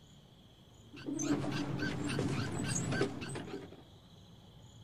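A cart's wheels rattle and rumble as it is pushed.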